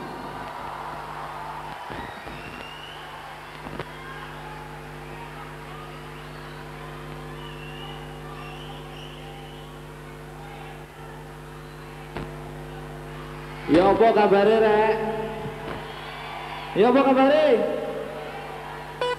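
A band plays a steady, held chord through loudspeakers in a large hall.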